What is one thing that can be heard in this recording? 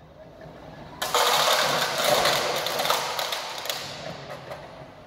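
A forklift rolls across a concrete floor with a loud, rough rumble.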